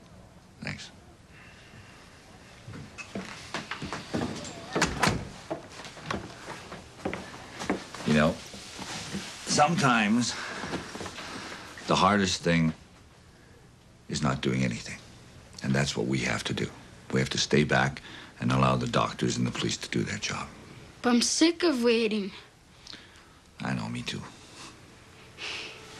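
A girl speaks softly, close by.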